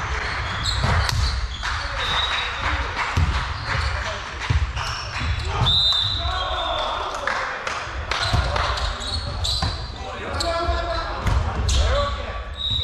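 A volleyball thumps off players' hands now and then.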